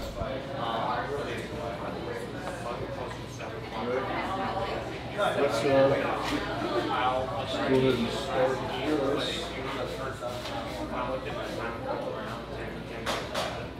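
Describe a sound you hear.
A man talks calmly nearby.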